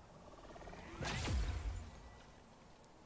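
A bright magical whoosh shimmers and rises.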